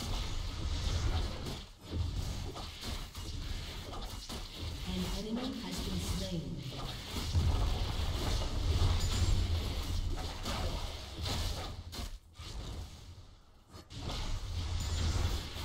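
Fantasy battle sound effects clash, zap and burst in quick succession.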